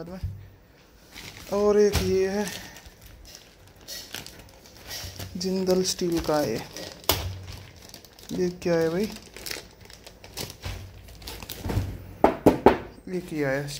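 Plastic wrapping crinkles as it is pulled off by hand.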